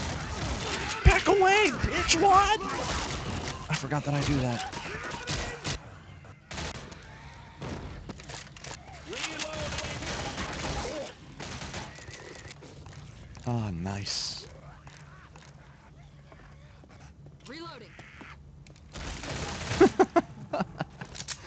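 Guns fire in sharp, rapid shots.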